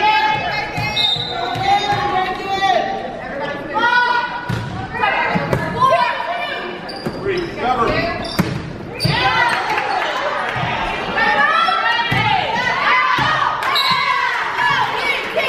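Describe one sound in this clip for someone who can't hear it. Young women players call out loudly to each other.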